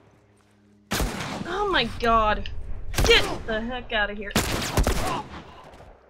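Gunshots bang loudly in quick succession.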